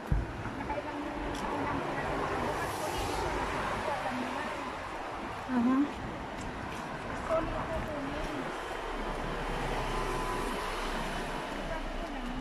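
A middle-aged woman talks close by, calmly.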